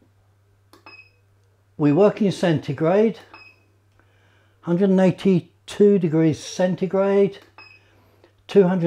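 A control panel gives short beeps as its buttons are pressed.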